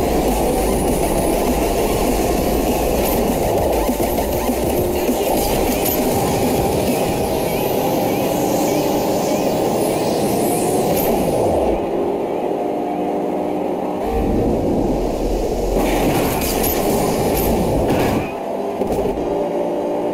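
A racing car engine roars at high speed.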